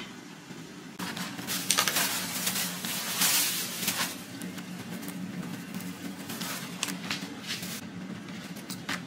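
Large leafy greens rustle as they are handled.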